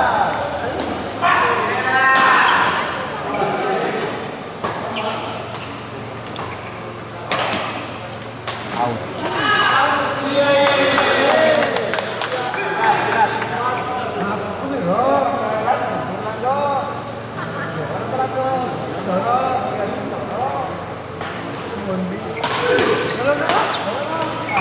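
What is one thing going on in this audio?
Shoes squeak on the court floor.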